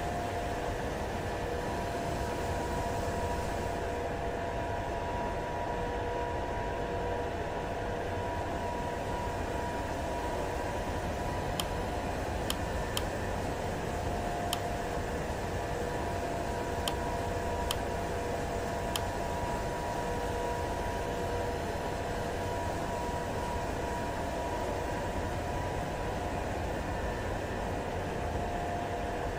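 A jet engine hums steadily at idle.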